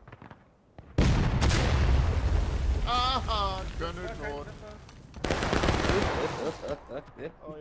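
Black-powder muskets fire in a volley and the booming rolls away.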